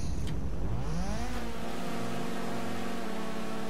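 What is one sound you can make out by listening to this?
A car engine revs up and idles with a rough, throaty rumble.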